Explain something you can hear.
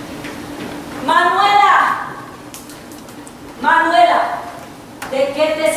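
A woman's voice sings out in long wavering calls across a large echoing hall.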